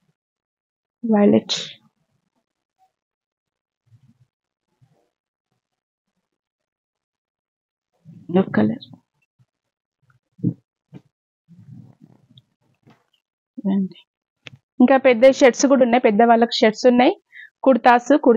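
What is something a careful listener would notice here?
A woman speaks close by in short bursts, explaining with animation.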